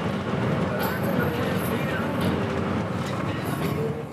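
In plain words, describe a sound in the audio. A windscreen wiper sweeps across the glass.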